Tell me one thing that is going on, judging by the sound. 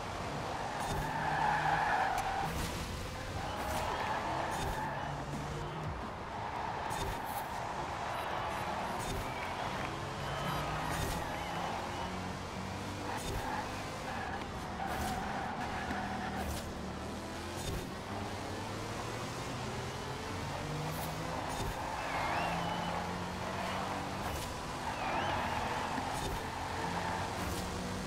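Tyres squeal on asphalt in the corners.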